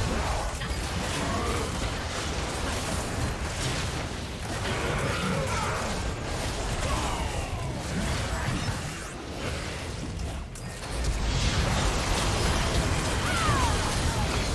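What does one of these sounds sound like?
Magic blasts whoosh and crackle in a busy battle.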